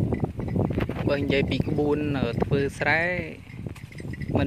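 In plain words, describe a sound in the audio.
A man calls out to his oxen in a drawn-out voice.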